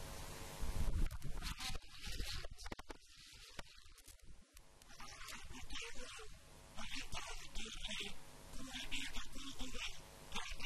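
A young man recites loudly into a microphone over loudspeakers.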